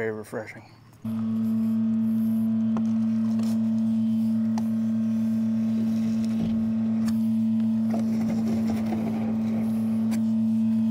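A suction hose drones steadily as it draws liquid from a pit.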